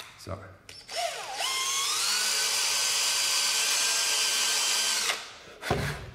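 A cordless drill whirs at high speed, rising in pitch and then holding steady.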